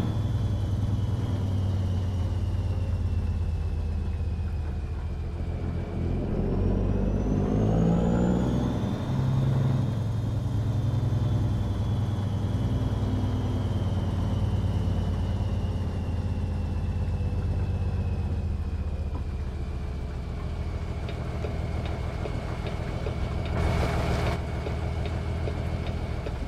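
A truck's diesel engine rumbles steadily and rises and falls as the truck drives.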